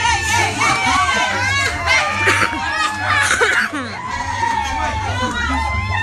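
Men and women talk and shout over each other close by.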